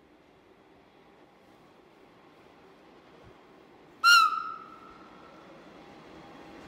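A train approaches slowly, its rumble growing louder.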